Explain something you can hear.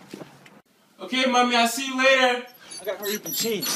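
A young man speaks brightly.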